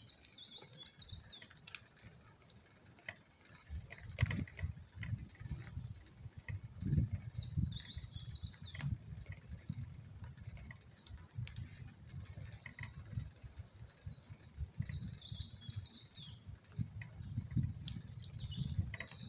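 Wind rumbles and buffets against the microphone of a moving bicycle.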